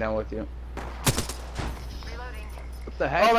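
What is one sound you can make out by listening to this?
A rifle fires a few quick shots.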